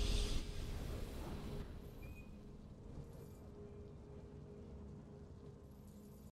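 A triumphant game chime rings out and slowly fades.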